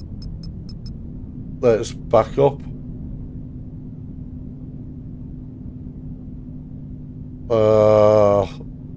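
A train engine hums steadily.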